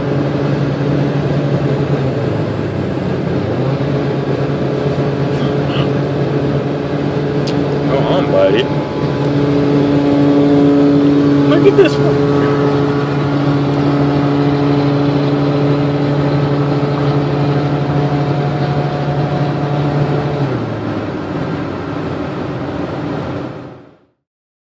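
Tyres roar on a highway.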